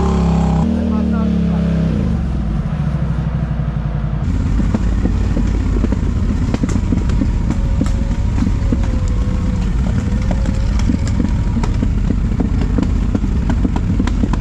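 Quad bike engines rumble and idle nearby.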